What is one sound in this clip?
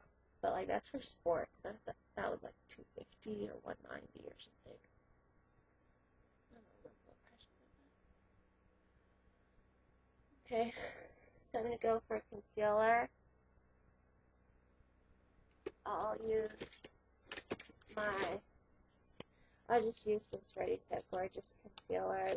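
A middle-aged woman talks close to the microphone.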